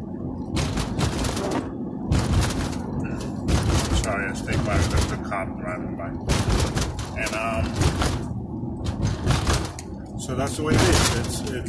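A man speaks calmly and close by inside a car.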